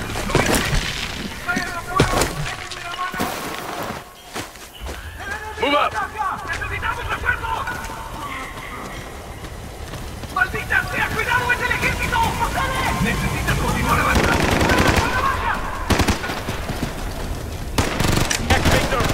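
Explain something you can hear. Gunfire and explosions crack and boom in a game.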